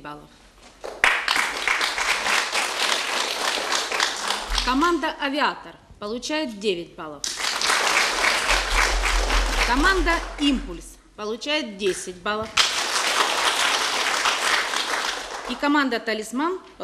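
A crowd applauds loudly indoors.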